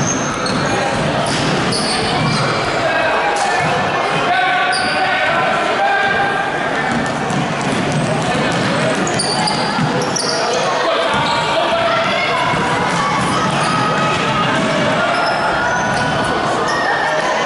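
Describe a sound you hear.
A crowd of spectators chatters and calls out in a large echoing gym.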